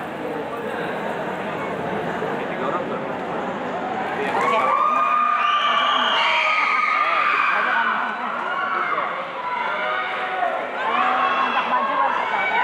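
A live band plays amplified music in a large echoing hall.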